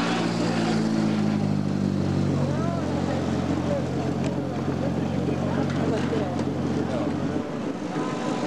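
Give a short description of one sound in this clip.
A rally car engine idles with a low, steady rumble.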